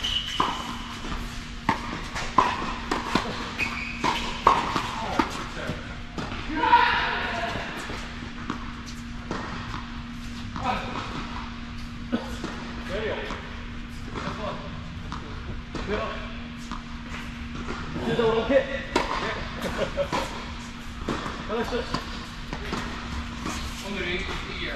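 Tennis balls pop off rackets in a large echoing hall.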